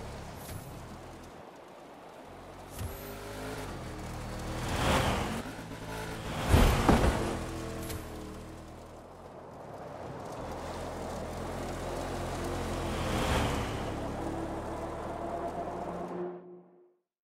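A rally car engine roars.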